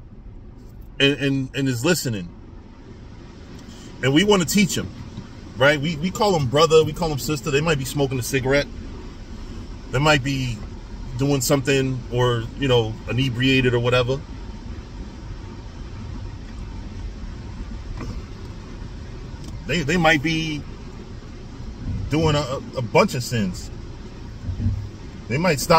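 A man speaks close by, calm and animated.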